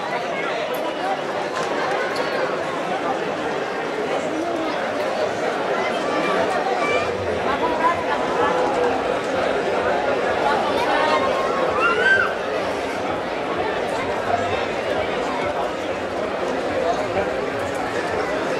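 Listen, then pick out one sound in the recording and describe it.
A crowd of people chatters loudly all around outdoors.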